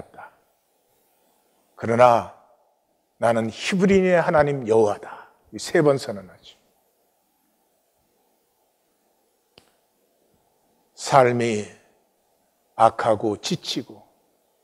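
An older man speaks calmly and slowly into a microphone, with pauses between phrases.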